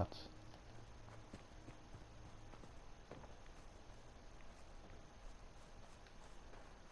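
Footsteps crunch over dirt and leaves at a steady walking pace.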